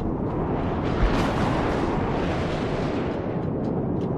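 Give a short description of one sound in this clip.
An explosion bursts with a crackle of sparks.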